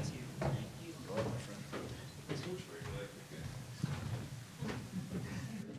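Footsteps thud on a hard stage floor.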